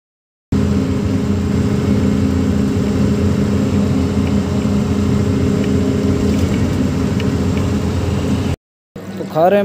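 A truck engine hums steadily from inside the cab.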